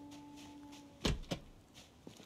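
A metal door bangs open.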